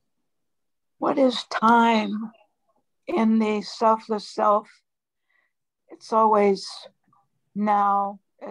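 An elderly woman speaks calmly over an online call.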